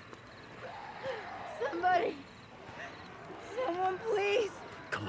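A woman cries out for help from a distance.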